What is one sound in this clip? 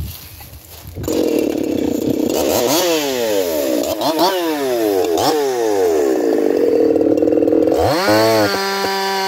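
A chainsaw engine runs loudly, its pitch rising and falling as it revs.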